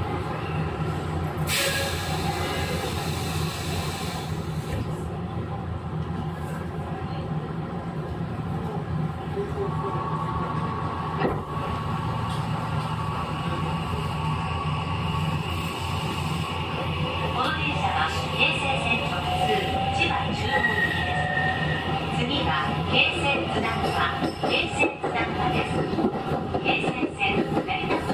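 An electric train rumbles steadily on the tracks nearby.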